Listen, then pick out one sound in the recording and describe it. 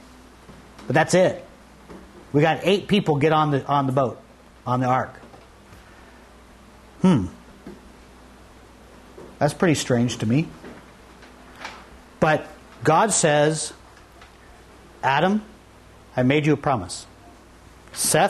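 A middle-aged man speaks with animation through a clip-on microphone, in bursts with pauses.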